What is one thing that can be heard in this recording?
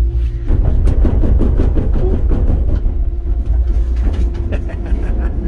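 A train rumbles along with a deep steady roar.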